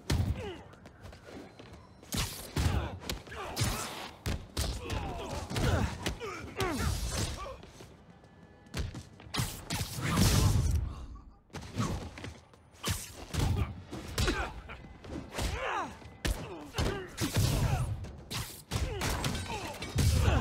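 Web shooters zip and snap.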